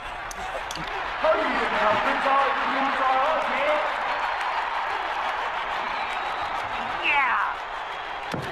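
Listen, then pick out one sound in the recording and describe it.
A crowd cheers loudly outdoors.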